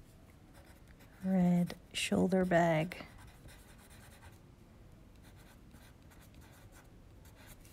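A pencil scratches softly on paper.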